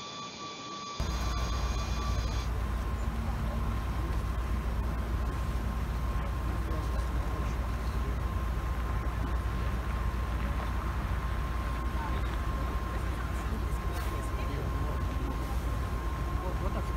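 Car engines idle nearby.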